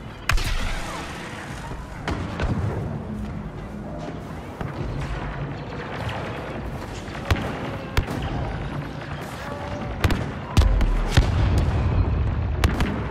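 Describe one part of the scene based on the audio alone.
Laser blasters fire in sharp, scattered shots.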